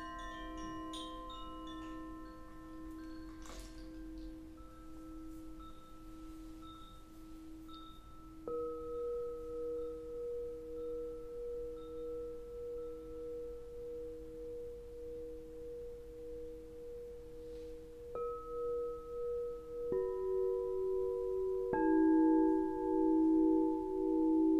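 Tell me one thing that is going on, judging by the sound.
Crystal singing bowls ring with steady, pulsing tones.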